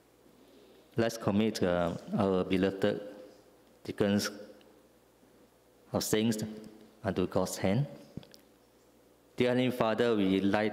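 A man speaks calmly into a microphone, heard through loudspeakers in a large room.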